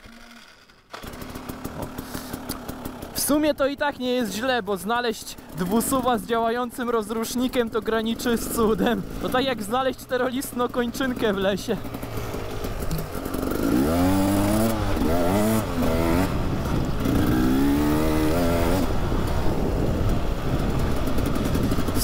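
A motorcycle engine idles and revs up and down close by.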